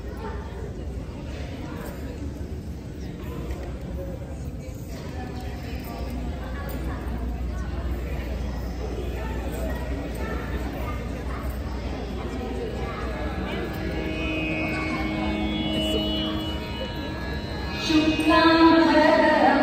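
A crowd of women chatters in a large echoing hall.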